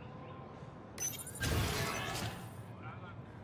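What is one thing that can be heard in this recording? A sliding door opens with a loud whoosh.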